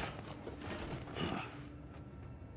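A man speaks quietly into a nearby microphone.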